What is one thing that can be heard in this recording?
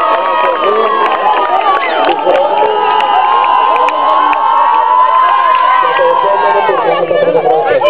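A group of young girls chant and cheer loudly together, close by.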